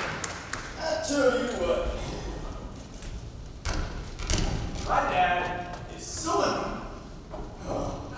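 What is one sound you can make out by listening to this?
A teenage girl speaks loudly.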